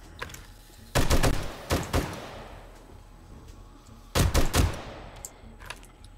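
Gunshots fire in short, rapid bursts.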